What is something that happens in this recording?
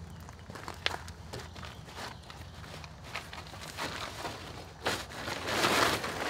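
A canvas cover rustles as a rope is pulled through.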